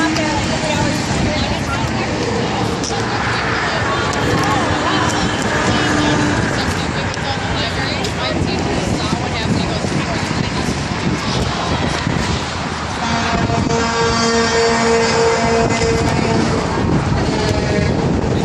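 A crowd of men and women chat nearby.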